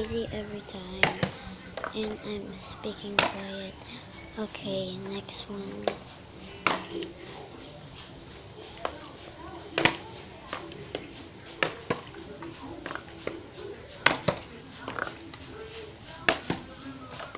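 A plastic bottle is tossed and lands with sharp thuds on concrete.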